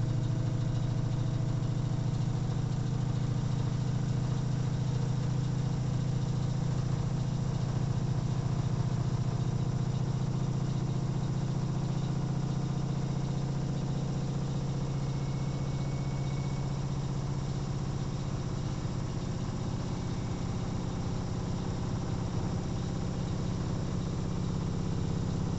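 A washing machine drum spins with a steady low hum.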